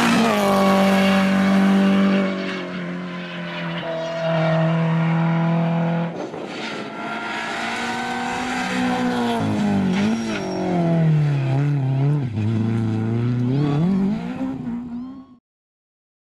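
A rally car engine roars at full throttle, its revs rising and falling through gear changes.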